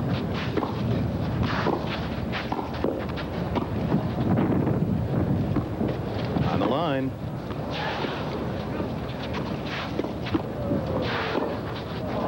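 A tennis ball is struck sharply by rackets, back and forth.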